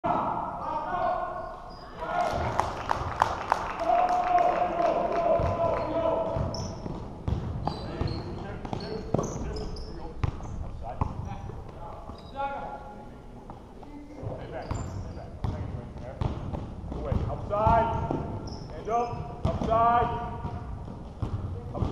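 Spectators talk and call out in an echoing gym.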